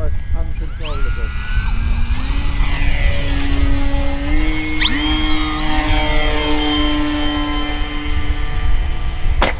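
A model plane's electric motor whines as it climbs away.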